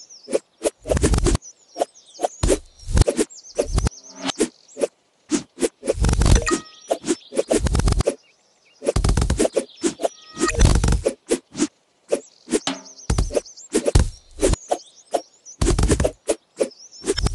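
Quick chopping and slicing sound effects come again and again.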